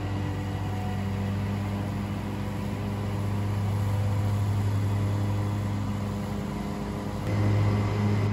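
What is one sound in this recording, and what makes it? A zero-turn ride-on mower engine drones as the mower cuts long grass.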